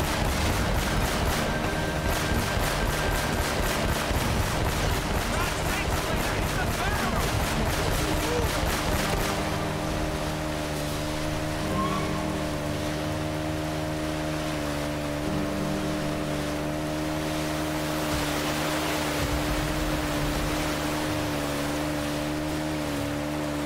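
A jet ski engine drones steadily.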